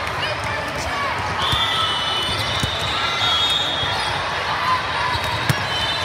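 A crowd chatters and calls out in a large echoing hall.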